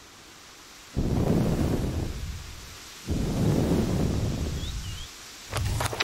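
A deep whoosh sounds as a game menu opens and closes.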